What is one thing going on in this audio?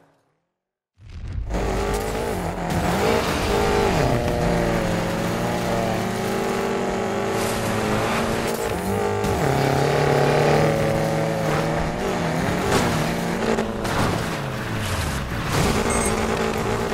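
Tyres skid and scrape over loose gravel.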